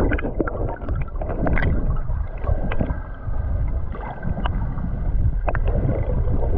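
Small bubbles tick and pop nearby underwater.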